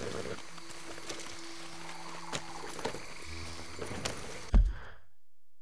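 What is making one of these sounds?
Birds and insects chirp in a forest.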